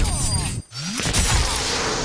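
An energy blast crackles and zaps.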